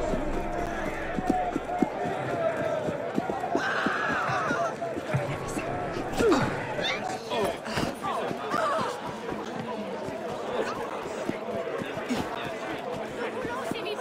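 A crowd of men and women chatters in the background.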